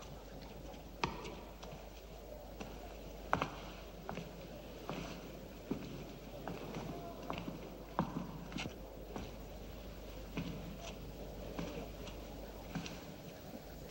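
Footsteps tap softly on a stone floor.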